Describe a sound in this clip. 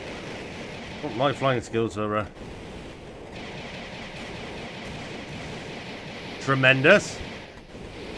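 A man speaks briefly into a headset microphone, close and casual.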